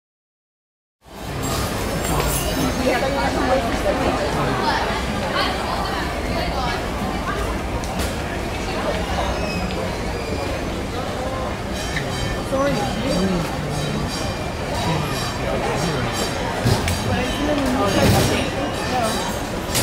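A crowd of people chatters.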